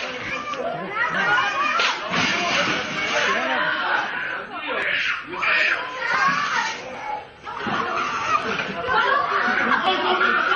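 Several men and women shout and scream close by in a chaotic scuffle.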